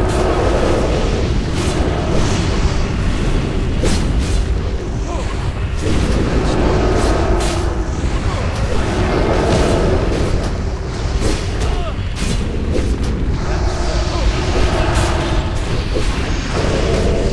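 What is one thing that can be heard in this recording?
Fiery blasts roar and crackle in bursts.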